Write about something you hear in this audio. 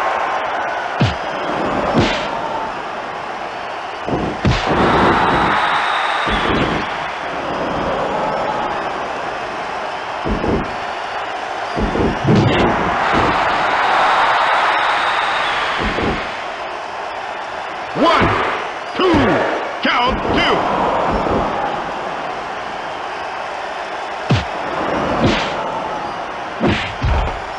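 Heavy thuds and slaps of bodies hitting a wrestling mat ring out now and then.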